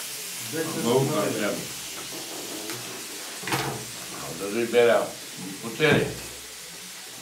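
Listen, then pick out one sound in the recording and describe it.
An elderly man talks calmly close by.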